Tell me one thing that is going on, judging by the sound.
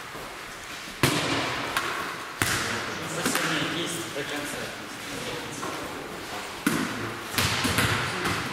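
A volleyball is struck with a sharp slap that echoes in a large hall.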